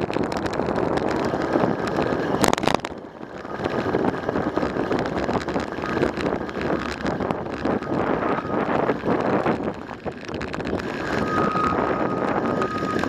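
Tyres roll over a paved road.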